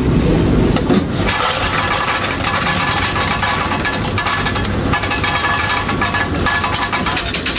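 An ice dispenser whirs and rattles as ice drops into a cup.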